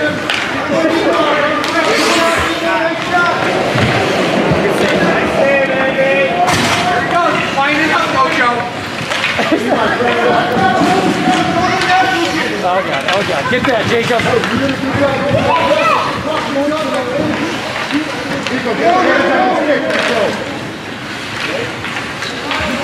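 Young children shout and call out to each other nearby.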